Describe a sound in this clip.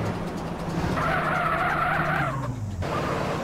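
Car tyres screech as the car skids around a corner.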